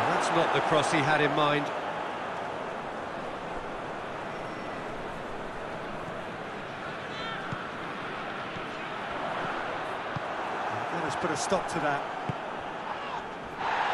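A stadium crowd roars steadily in a large open space.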